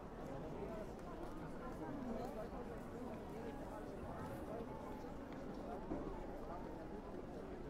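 A crowd of people chatters outdoors in a busy open square.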